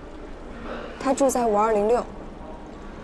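A young woman speaks briefly and politely.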